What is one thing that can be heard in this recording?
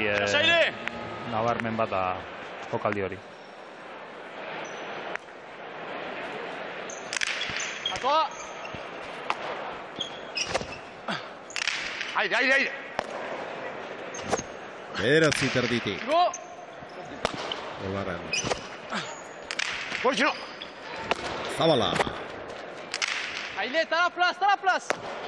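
Sports shoes squeak sharply on a hard floor.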